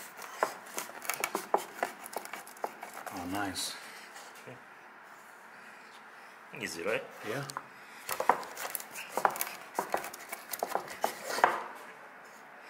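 A wooden rolling pin rolls and knocks on a wooden board.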